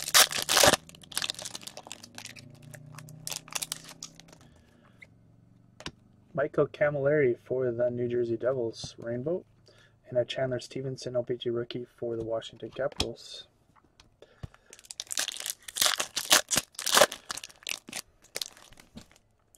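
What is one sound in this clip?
A foil wrapper crinkles and rustles in hands.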